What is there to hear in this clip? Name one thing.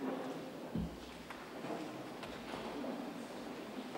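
A censer's metal chains clink in a large echoing hall.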